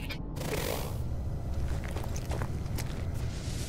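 Footsteps crunch softly on the ground.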